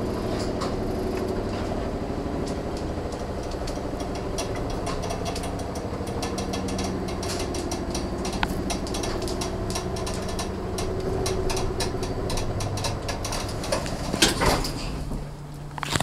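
Metal parts of an elevator click and clatter rapidly.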